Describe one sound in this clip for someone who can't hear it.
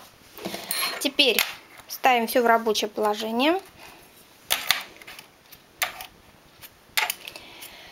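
Metal needles and a comb click and tap.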